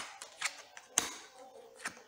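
A card slaps down onto a table.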